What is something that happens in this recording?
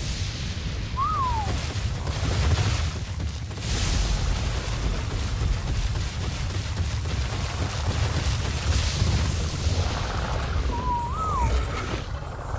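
A person whistles short rising and falling notes.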